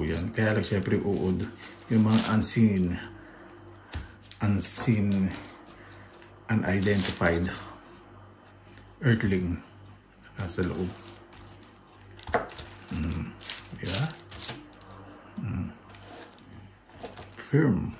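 A knife slices through soft mushrooms and taps on a cutting board.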